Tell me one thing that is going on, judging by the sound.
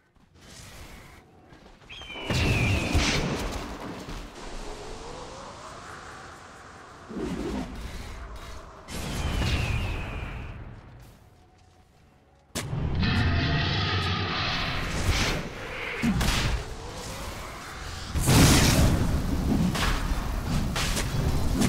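Fantasy game spell effects whoosh and crackle during a battle.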